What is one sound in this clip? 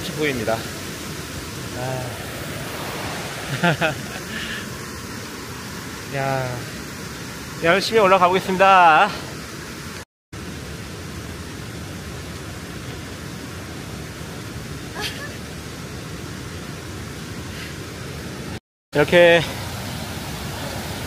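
A mountain stream rushes steadily over rocks.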